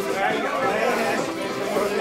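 An accordion plays a tune.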